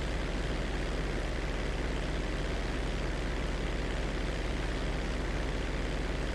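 A propeller engine drones steadily and loudly with a fast rattling pulse.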